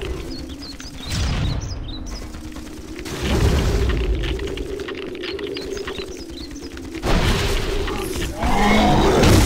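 Heavy weapon blows thud and clang in a fight.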